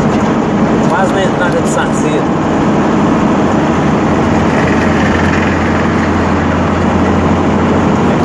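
A vehicle engine hums steadily.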